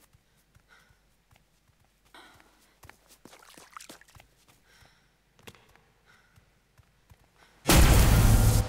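Footsteps crunch over rough ground.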